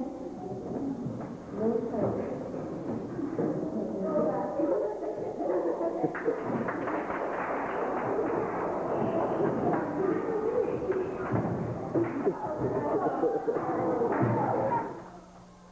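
A crowd of women and men shout and cry out with emotion in an echoing hall.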